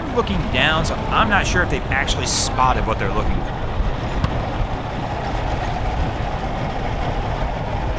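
Water sloshes as a boat slides out of it.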